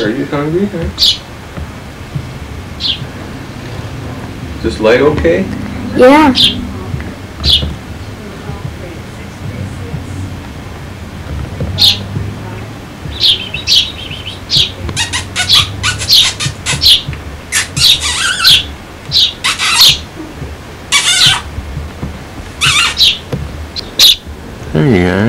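A small bird chirps in short, sharp, high bursts.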